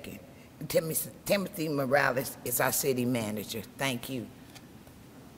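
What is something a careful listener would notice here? An elderly woman speaks calmly into a microphone in a large, echoing room.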